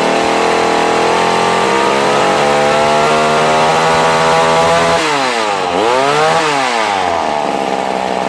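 A small chainsaw engine runs at high revs close by, then its pitch swoops down and up.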